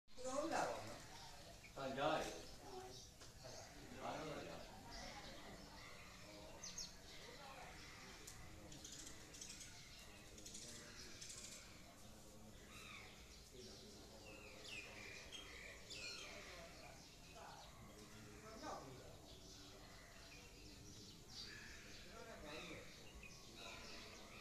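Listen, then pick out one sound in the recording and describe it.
Children talk and chatter nearby.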